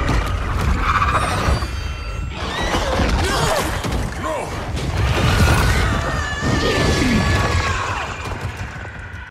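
A giant creature screeches.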